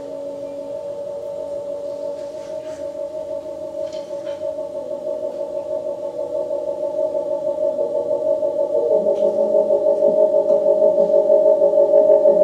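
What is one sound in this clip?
Electronic synthesizer tones drone and pulse, growing steadily louder.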